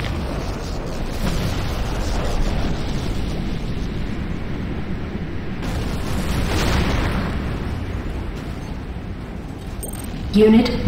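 A jetpack roars steadily with a rushing hiss.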